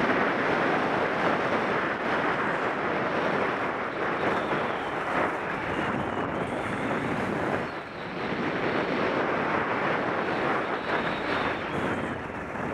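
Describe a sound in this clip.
Skis scrape and hiss steadily over packed snow.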